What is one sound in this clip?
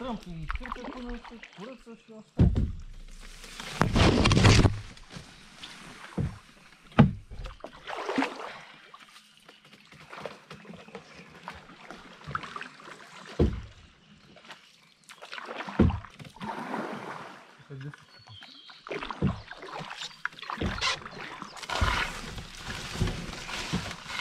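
Paddle strokes splash and knock in the water.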